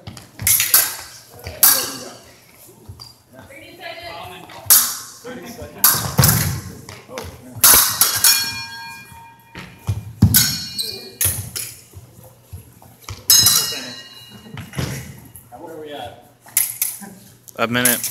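Fencing blades clash and scrape sharply, ringing in an echoing hall.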